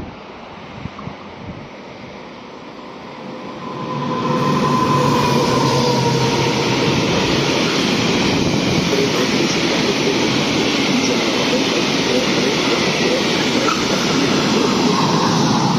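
A long freight train rumbles and clatters loudly past close by.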